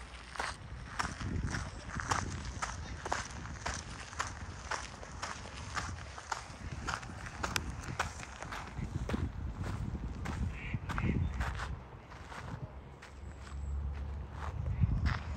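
Footsteps crunch steadily on a gravel path.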